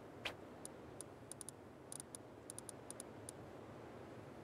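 Soft electronic clicks tick in quick succession.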